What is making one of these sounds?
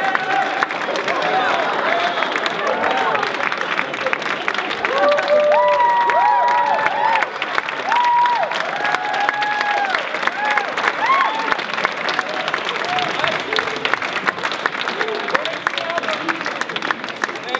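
Young men shout and whoop with excitement nearby.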